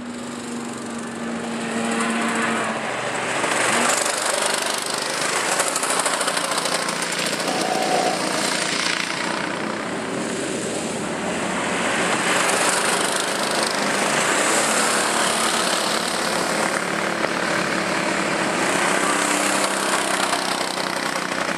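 Go-kart engines buzz and whine loudly as karts race past nearby.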